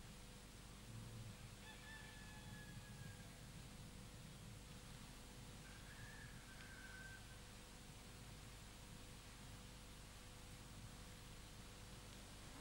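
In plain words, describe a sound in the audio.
A middle-aged woman weeps quietly close by.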